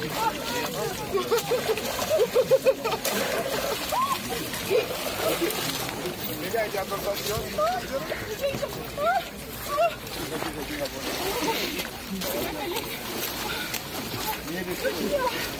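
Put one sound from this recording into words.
A crowd of men and women chatter and call out nearby outdoors.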